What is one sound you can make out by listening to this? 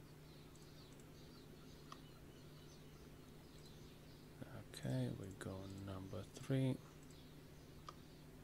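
A mouse clicks.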